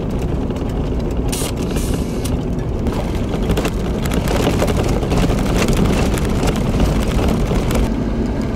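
A vehicle's engine rumbles steadily as it drives.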